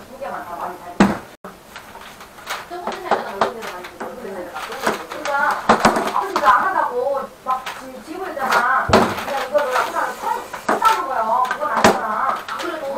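A plastic hose rustles and knocks as it is pulled out.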